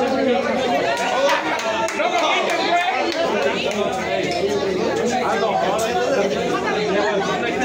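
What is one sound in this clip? A crowd of men and women talk and shout over each other in a noisy room.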